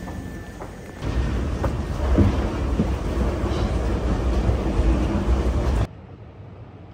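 An escalator hums and rumbles in an echoing hall.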